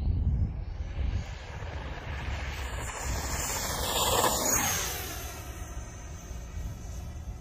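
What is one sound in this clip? A small model jet whooshes past close by with a high whine that rises and then fades away.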